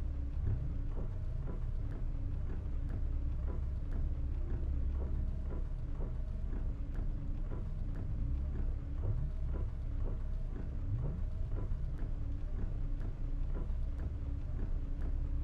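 Windscreen wipers sweep back and forth in a steady rhythm.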